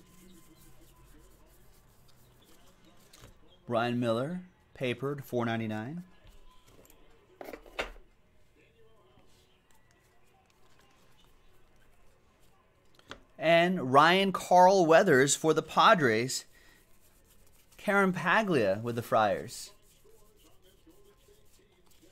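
Trading cards rustle and slide as hands flip through them.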